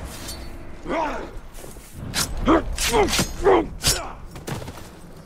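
Blades strike with sharp, loud hits.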